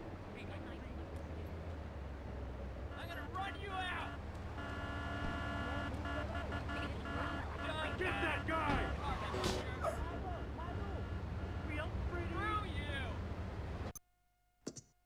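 A police siren wails nearby.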